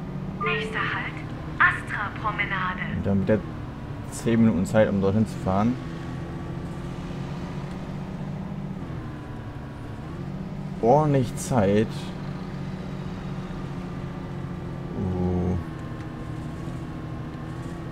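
A city bus's diesel engine hums as the bus drives along.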